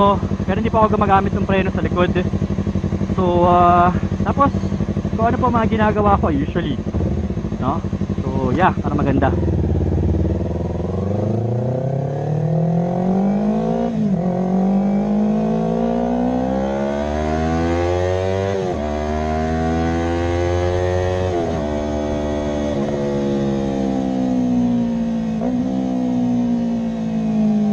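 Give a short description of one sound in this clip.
A motorcycle engine drones close by, rising in pitch as it speeds up and dropping briefly with each gear change.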